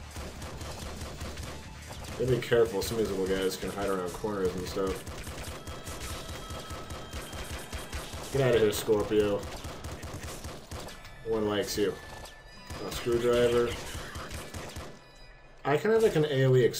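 Small guns fire in quick bursts, with crackling blasts.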